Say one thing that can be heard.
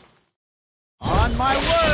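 Magical attacks whoosh and strike with bright, sharp bursts.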